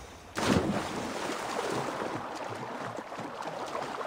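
Water splashes as a person swims.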